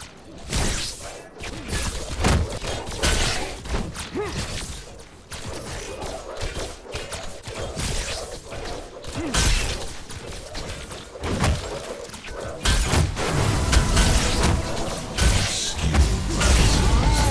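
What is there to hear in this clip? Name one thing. Gunfire and blasts crackle in quick bursts.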